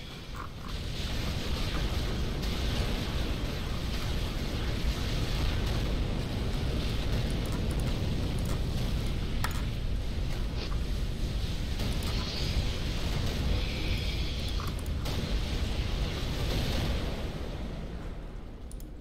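Explosions and gunfire rumble steadily in a large battle.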